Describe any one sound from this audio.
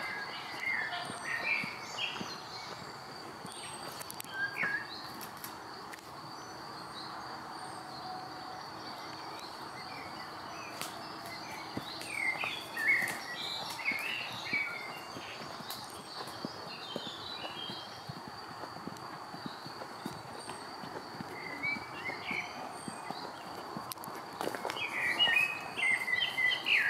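A horse's hooves thud as it walks on a dirt path.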